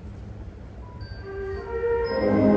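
A band of wind instruments begins to play.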